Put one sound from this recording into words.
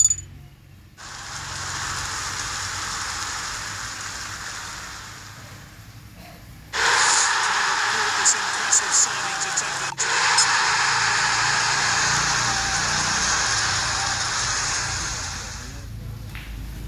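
Fireworks fountains hiss and crackle.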